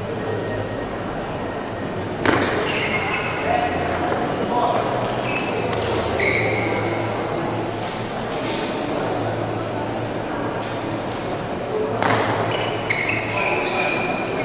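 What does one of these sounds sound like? A ping-pong ball clicks quickly back and forth off paddles and a table.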